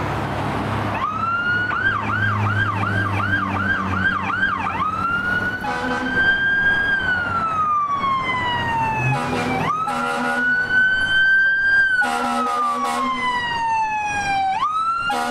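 A fire truck siren wails and yelps loudly close by.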